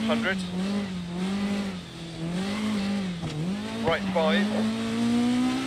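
A car engine drones steadily at high revs, its pitch dipping and rising slightly.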